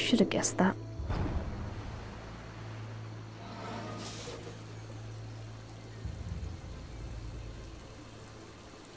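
Water gushes and splashes steadily from a fountain.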